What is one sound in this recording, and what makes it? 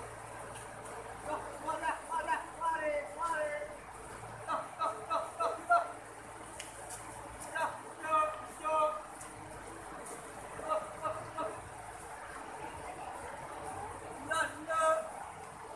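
A river rushes steadily over rocks.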